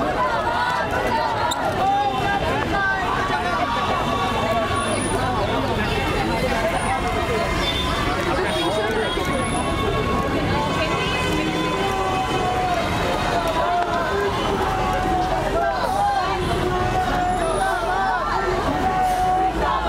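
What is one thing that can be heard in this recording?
Protesters chant slogans together in unison.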